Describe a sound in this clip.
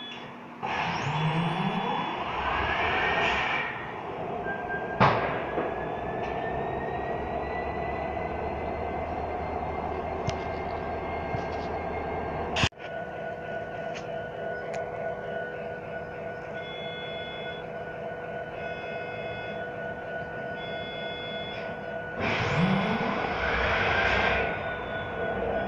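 A train horn blasts loudly.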